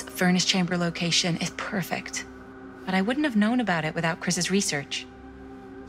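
A young woman speaks calmly and warmly, close by.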